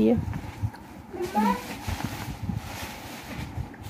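Satin ribbon rustles softly as a hand crumples it.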